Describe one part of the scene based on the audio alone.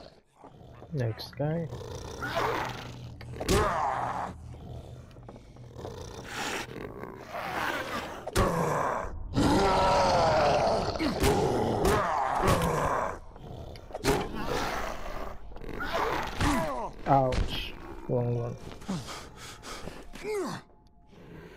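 A man growls and snarls loudly.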